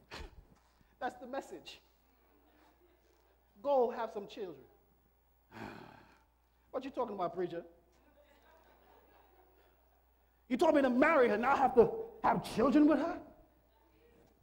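A man preaches with animation into a microphone, pausing between phrases.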